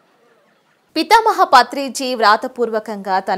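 A young woman speaks clearly and evenly, close up.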